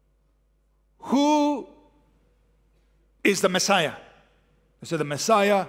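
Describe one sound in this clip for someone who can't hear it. A man speaks emphatically into a microphone, with long pauses between phrases.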